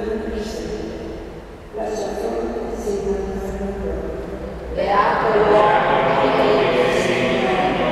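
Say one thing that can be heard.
A woman reads out through a microphone in a large echoing hall.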